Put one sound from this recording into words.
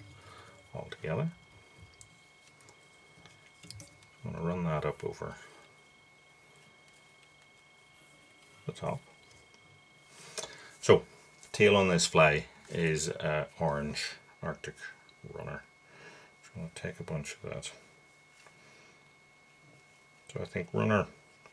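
A man talks calmly close by, in short bursts with pauses.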